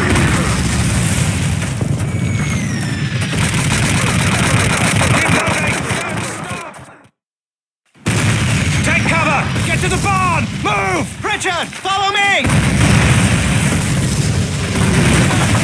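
Explosions boom nearby and rumble low.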